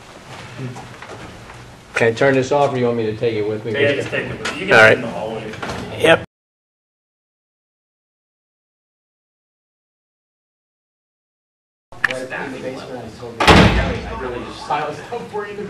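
A man speaks at a meeting through a microphone, in a room with a slight echo.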